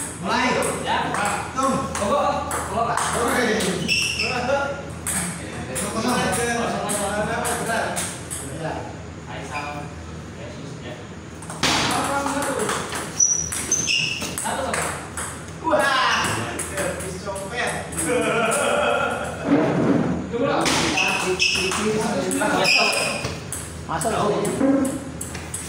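Young men talk and call out casually nearby.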